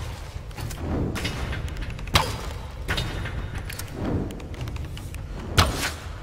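Wood and metal crash and clatter as debris falls.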